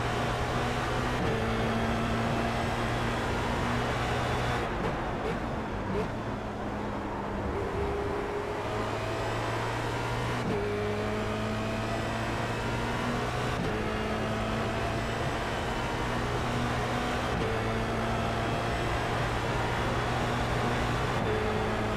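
A racing car engine roars steadily, its pitch jumping as gears shift up and down.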